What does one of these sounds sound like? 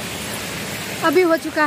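Another young woman speaks close by, loudly and briefly.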